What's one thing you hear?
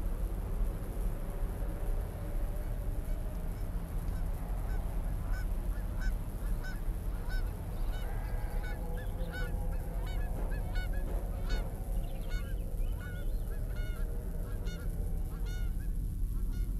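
Birds chirp and call overhead.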